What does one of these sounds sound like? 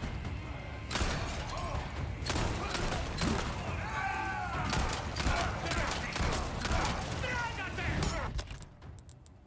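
Gunshots bang in quick succession.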